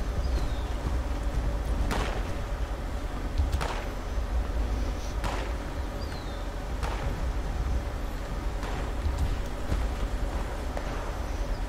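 Heavy metal footsteps thud slowly.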